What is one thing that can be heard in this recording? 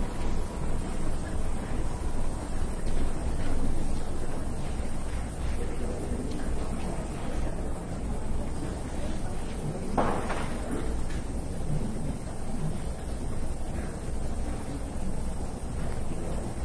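Two elderly women chat quietly in the distance.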